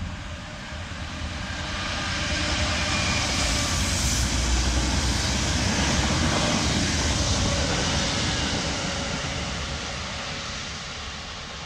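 A Class 66 diesel locomotive passes with its engine rumbling.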